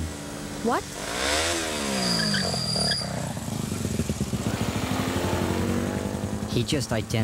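A motorcycle engine revs and rumbles as it pulls away.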